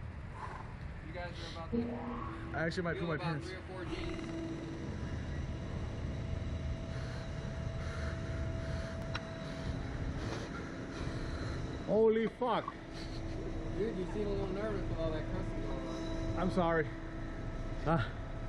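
A young man talks with excitement close by.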